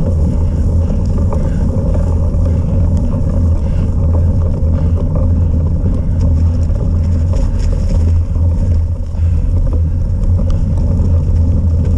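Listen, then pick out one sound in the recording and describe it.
Tyres crunch and rumble over a rough forest trail.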